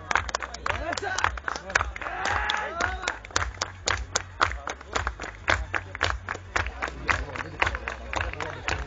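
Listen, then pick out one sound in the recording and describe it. A crowd claps hands in rhythm outdoors.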